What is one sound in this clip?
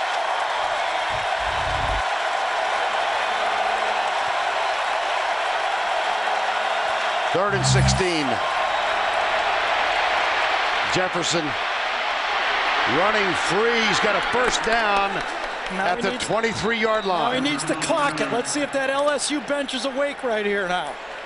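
A large crowd roars steadily outdoors.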